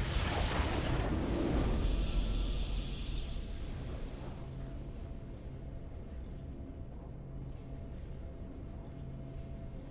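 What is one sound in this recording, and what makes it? Triumphant game music swells.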